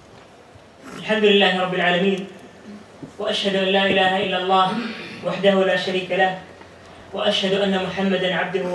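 A young man chants loudly into a microphone.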